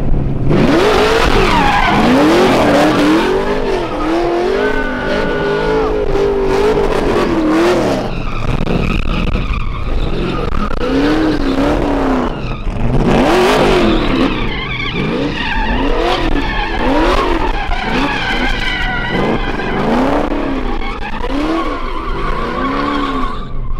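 Tyres screech and squeal as a truck spins on pavement.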